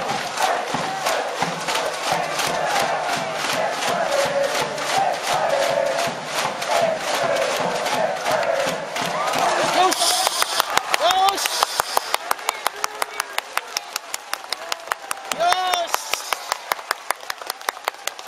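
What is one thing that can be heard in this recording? A crowd claps in a fast, steady rhythm.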